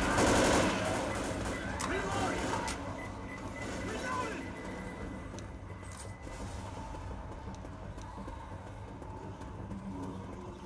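Zombies snarl and growl nearby.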